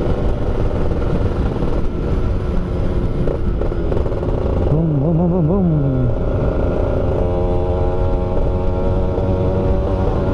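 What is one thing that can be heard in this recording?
A motorcycle engine hums and revs steadily up close.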